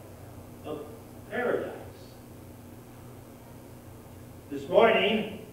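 An older man speaks through a microphone in a short, halting way, in an echoing hall.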